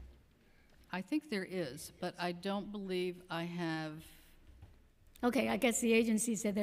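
An older woman speaks steadily into a microphone.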